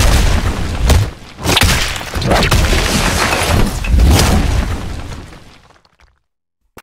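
Energy blasts crackle and whoosh with a deep rumble.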